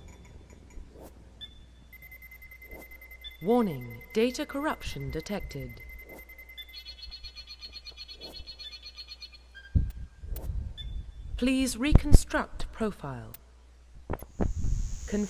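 Electronic computer tones beep and chirp.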